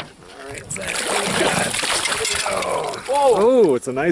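A fish splashes and thrashes in the water close by.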